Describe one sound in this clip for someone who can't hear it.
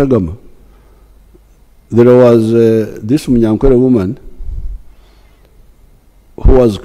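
An elderly man speaks slowly and deliberately into a microphone, with pauses between phrases.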